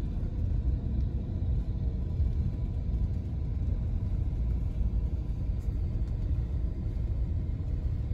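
A pickup truck pulls forward slowly with a low engine rumble.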